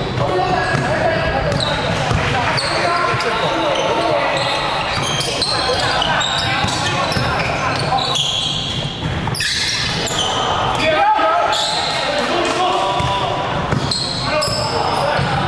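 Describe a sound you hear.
Young men shout and call out to each other across the court.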